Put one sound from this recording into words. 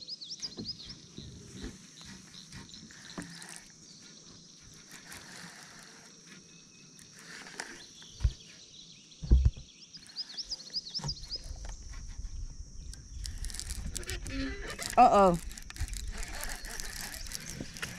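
A fishing reel clicks and rattles as it is handled close by.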